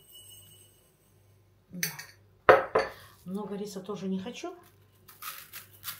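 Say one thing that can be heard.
Powder pours from a cup into a bowl.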